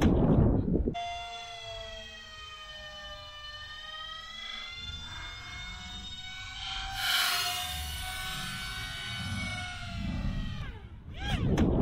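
A small model plane's motor whines as it flies overhead.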